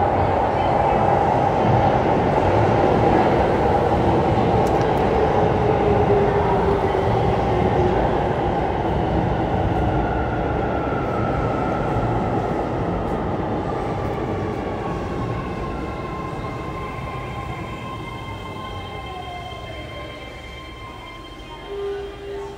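A train rumbles loudly along the tracks and gradually slows down.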